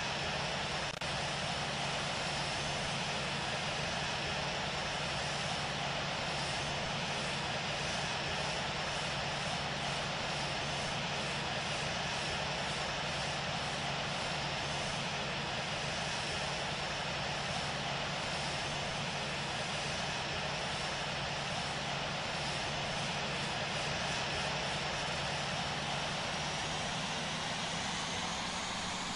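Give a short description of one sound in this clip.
Jet engines roar steadily with a low hum.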